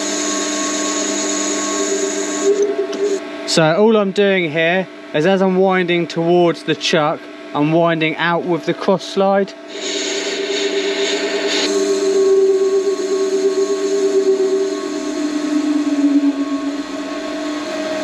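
A cutting tool hisses and scrapes against spinning metal.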